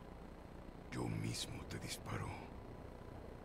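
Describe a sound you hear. An older man answers in a low, firm voice.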